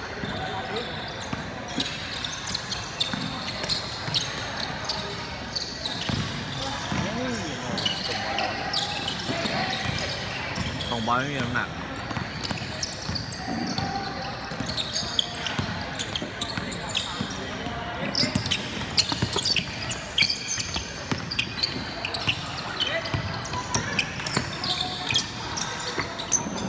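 Sneakers squeak sharply on a hardwood court, echoing in a large hall.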